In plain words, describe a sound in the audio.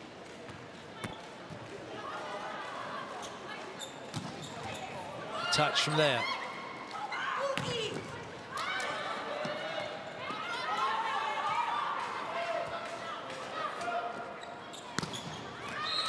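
A volleyball is struck hard, with sharp slaps.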